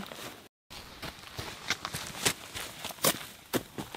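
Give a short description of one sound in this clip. Footsteps crunch on dry pine needles.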